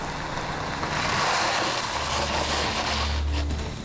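A car engine hums as a car drives along a road in the distance.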